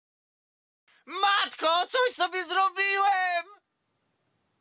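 A man speaks with animation into a close microphone, in a strained cartoonish voice.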